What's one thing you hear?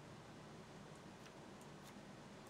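A short game sound effect plays as a card is placed.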